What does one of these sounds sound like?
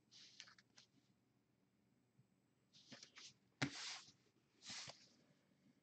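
Plastic card sleeves rustle and crinkle between fingers close by.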